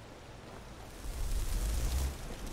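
A magic spell crackles and hums.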